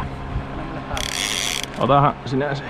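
A fishing reel's drag buzzes as line pulls out.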